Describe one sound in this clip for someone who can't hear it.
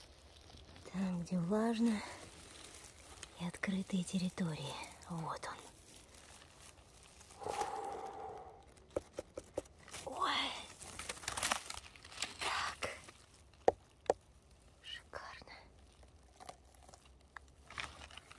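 Leaves and moss rustle as a hand brushes through them close by.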